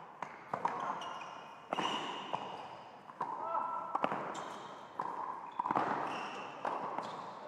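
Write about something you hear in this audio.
Tennis shoes squeak sharply on a hard court.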